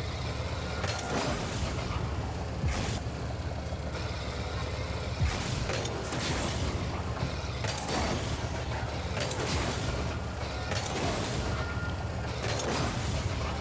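Car engines rev and roar in bursts.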